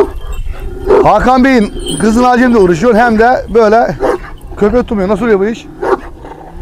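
A large dog growls and snarls with a rough, wavering voice.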